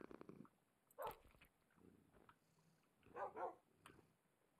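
A cartoonish cat meows.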